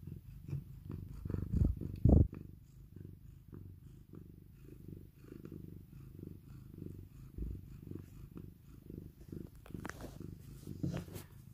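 Fur rubs and brushes against the microphone.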